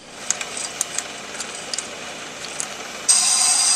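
A wrench clicks and ticks against a metal bolt.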